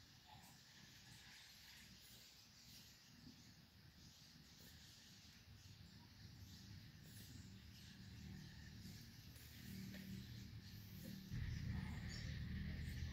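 A hand rubs and ruffles damp fur close by.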